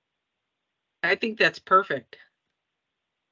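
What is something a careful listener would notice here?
A woman speaks briefly and calmly over an online call.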